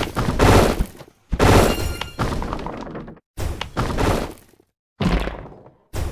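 Bubbles pop with quick bright game chimes.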